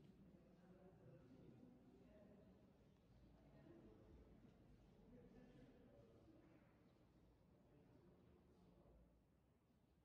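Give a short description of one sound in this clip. Women talk quietly in a large echoing room.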